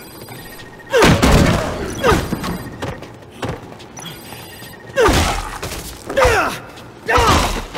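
Heavy blows thud into bodies again and again.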